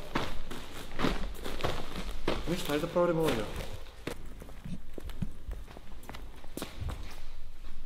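Footsteps thud in a large echoing hall.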